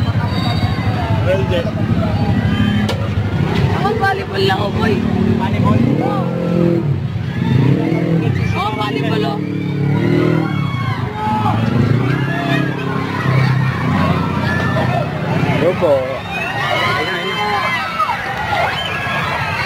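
A crowd of people chatter and shout outdoors.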